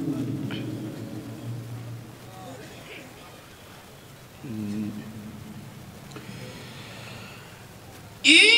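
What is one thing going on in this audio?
A man chants melodiously into a microphone, heard through loudspeakers with some echo.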